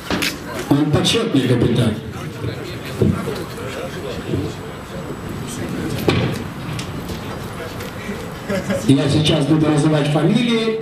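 A man speaks into a microphone, heard over a loudspeaker outdoors.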